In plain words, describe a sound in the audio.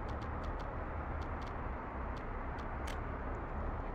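A short click sounds as a menu opens.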